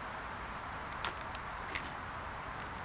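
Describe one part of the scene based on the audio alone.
A pocket knife is set down on stone with light clicks.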